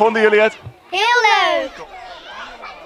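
A young girl speaks excitedly into a microphone.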